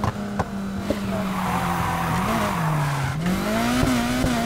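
Tyres squeal as a car drifts around a corner.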